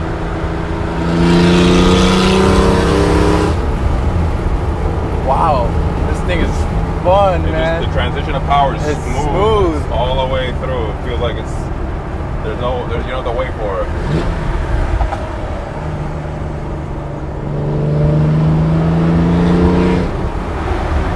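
A sports car engine roars loudly as the car accelerates past.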